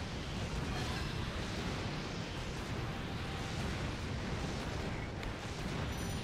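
Fiery explosions boom and rumble continuously.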